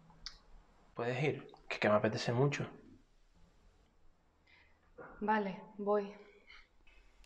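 A young woman speaks quietly and earnestly, close by.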